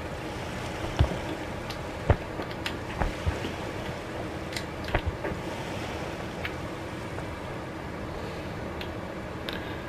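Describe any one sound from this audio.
Footsteps thud softly on a hard surface.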